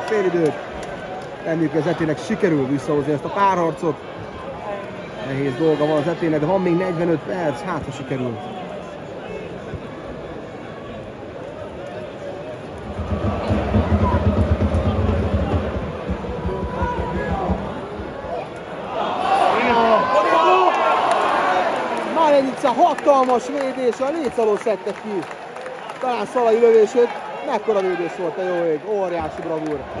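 A large crowd of fans chants and sings loudly in an open stadium.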